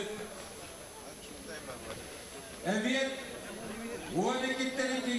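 A crowd murmurs across an open outdoor stadium.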